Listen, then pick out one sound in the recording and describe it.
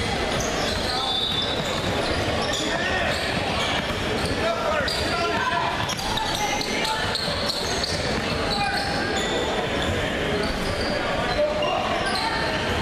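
A crowd of children and adults chatters and shouts in a large echoing gym.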